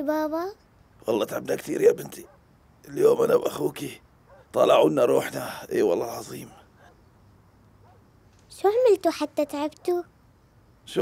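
A girl speaks nearby in an upset voice.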